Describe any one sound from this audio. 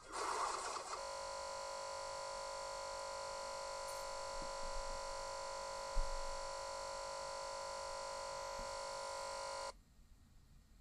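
A laptop speaker blares a loud, steady, harsh buzz that cuts off abruptly.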